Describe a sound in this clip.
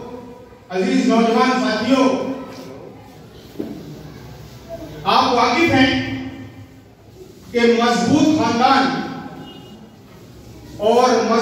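An elderly man speaks forcefully into a microphone, heard through loudspeakers.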